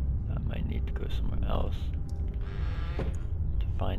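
A wooden crate lid creaks open.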